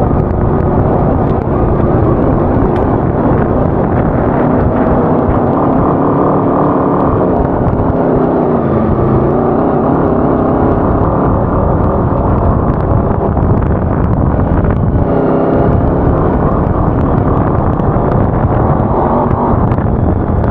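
Tyres crunch and rumble over rough dirt.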